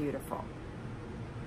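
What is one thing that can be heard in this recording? A middle-aged woman speaks briefly and softly close by.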